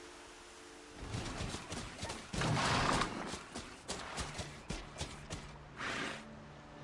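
Mechanical mounts clatter and stomp over grassy ground.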